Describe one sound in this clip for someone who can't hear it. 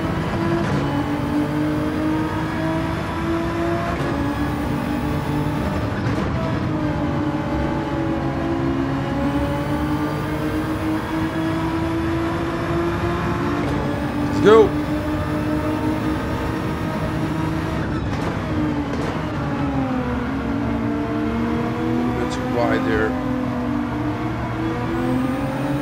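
A racing car engine roars steadily, rising and falling in pitch as it shifts gears.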